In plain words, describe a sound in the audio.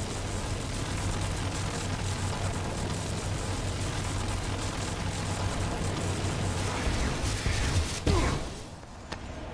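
Electricity crackles and hums loudly in a steady stream.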